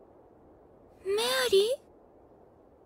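A young man asks a question in a calm voice.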